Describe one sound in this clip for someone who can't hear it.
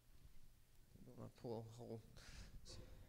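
A man speaks briefly through a microphone.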